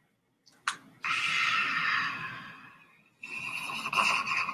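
A man laughs loudly, close to a microphone.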